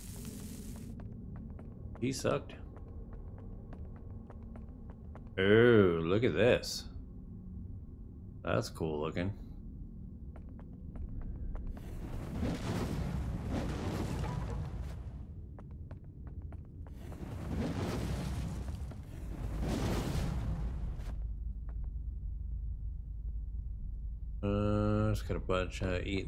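Footsteps run steadily over soft ground.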